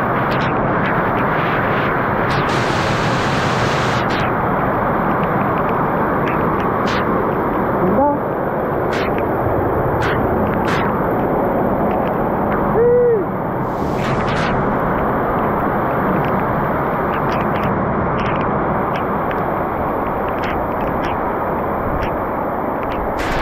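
Rainwater drips and splashes onto the ground.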